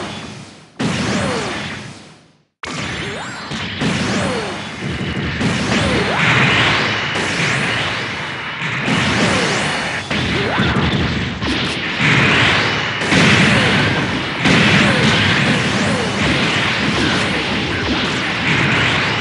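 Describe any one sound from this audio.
Jet thrusters roar in repeated surges.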